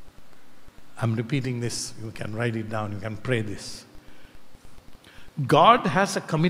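An elderly man speaks with animation into a microphone.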